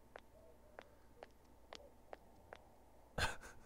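Footsteps tap lightly on pavement at a steady pace.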